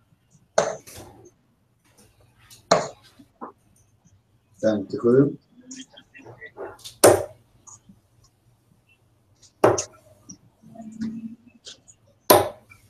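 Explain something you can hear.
Darts thud into a bristle dartboard.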